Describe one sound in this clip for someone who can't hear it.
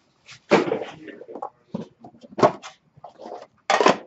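A box lid slides open with a papery scrape.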